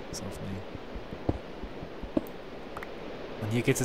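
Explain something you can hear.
A pickaxe chips at stone in short taps.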